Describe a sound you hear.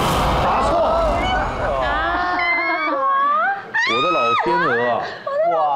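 A woman laughs and exclaims into a microphone.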